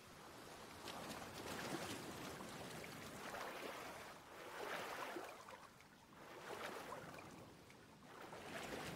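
A person swims, splashing through water in strokes.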